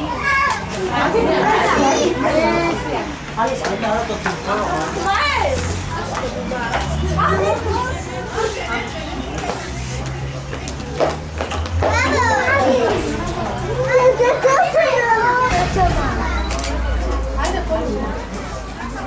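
Several men and women talk and call out with animation nearby.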